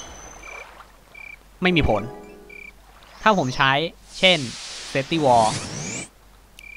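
A magic spell shimmers and crackles as ice shards burst up.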